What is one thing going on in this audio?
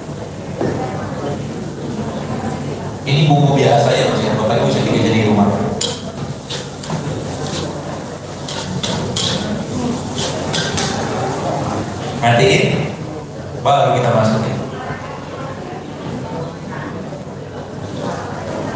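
A man talks through a microphone with animation.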